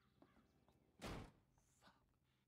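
A door slams shut.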